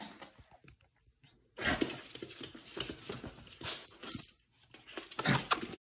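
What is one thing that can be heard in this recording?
A toy scrapes and bumps on a wooden floor.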